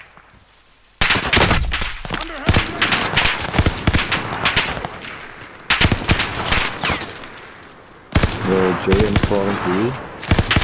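A submachine gun fires rapid bursts, loud and close.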